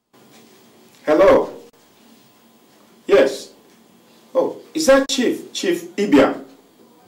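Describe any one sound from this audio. A man speaks tensely into a mobile phone, close by.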